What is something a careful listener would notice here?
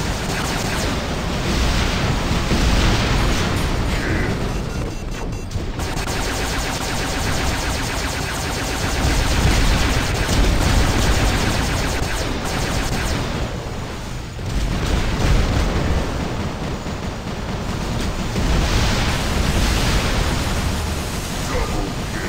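Guns fire in rapid bursts with loud blasts and explosions.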